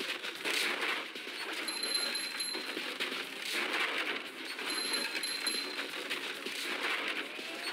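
Upbeat video game music plays throughout.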